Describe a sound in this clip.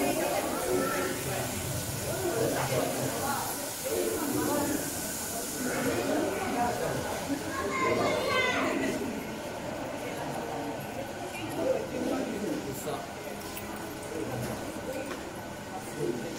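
Elephants shuffle their feet on a concrete floor.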